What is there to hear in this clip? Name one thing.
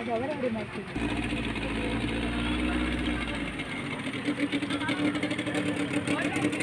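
A boat motor idles nearby with a low hum.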